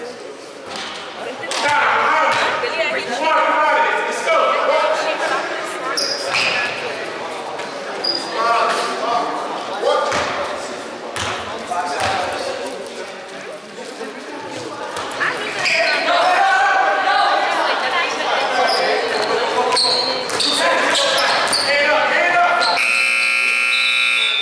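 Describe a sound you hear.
A crowd of young people shouts and chatters in a large echoing hall.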